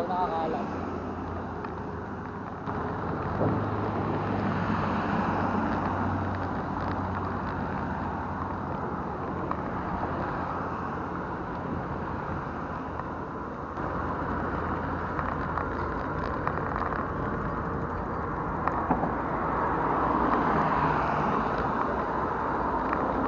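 Traffic roars past on a nearby road.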